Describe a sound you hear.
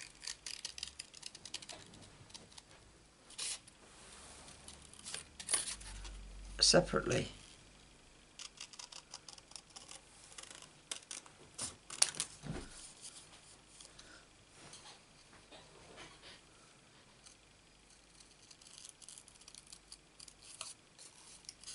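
Scissors snip through card in quick, crisp cuts.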